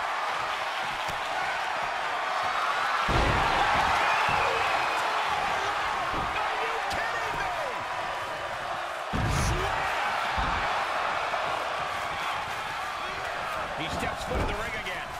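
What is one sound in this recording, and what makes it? A large crowd cheers and roars throughout in a big echoing arena.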